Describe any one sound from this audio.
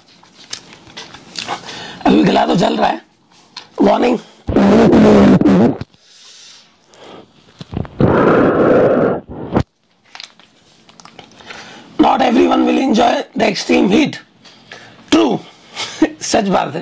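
A plastic packet crinkles in a man's hands.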